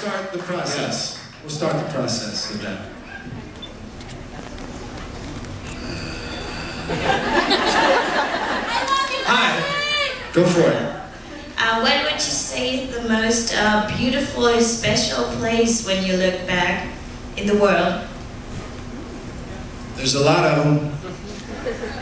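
A man talks with animation into a microphone, heard through loudspeakers in an echoing hall.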